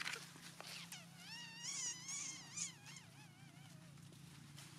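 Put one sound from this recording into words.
A young monkey squeals in short wavering cries close by.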